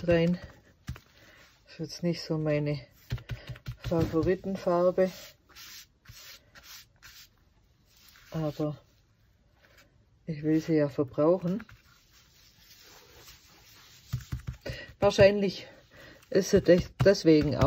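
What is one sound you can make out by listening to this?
Gloved hands rub and smear thick paint on a canvas.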